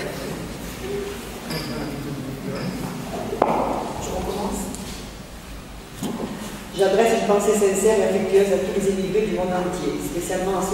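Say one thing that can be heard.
A woman speaks calmly into a microphone, heard through loudspeakers in an echoing hall.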